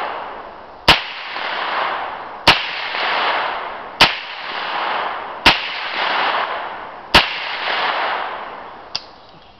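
A 9mm carbine fires single shots, each one echoing through the woods.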